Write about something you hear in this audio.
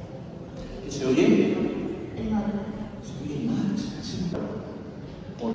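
A young man talks quietly close by.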